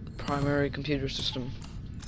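A switch clicks on a control panel.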